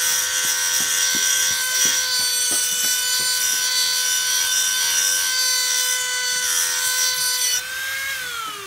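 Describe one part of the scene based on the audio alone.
A rotary tool grinds metal with a high, steady whine.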